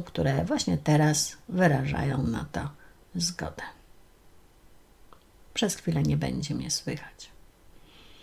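A middle-aged woman speaks calmly and closely into a microphone, with pauses.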